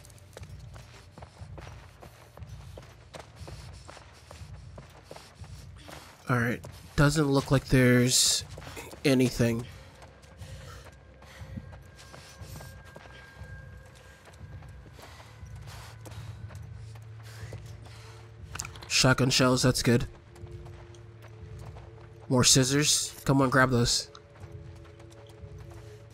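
Soft footsteps pad slowly across a hard floor.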